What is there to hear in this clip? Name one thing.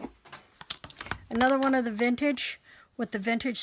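A plastic package rustles and crinkles as it is handled.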